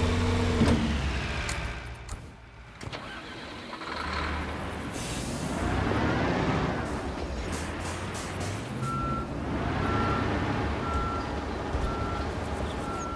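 A truck engine rumbles and revs.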